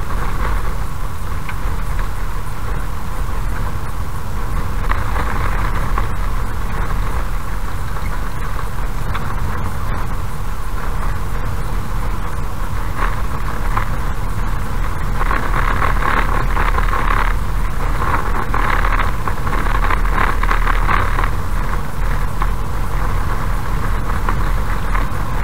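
A car engine hums steadily as the car drives along a road.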